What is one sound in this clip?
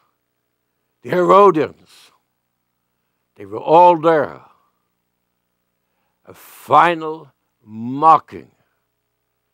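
An elderly man speaks slowly and emphatically into a microphone, with long pauses.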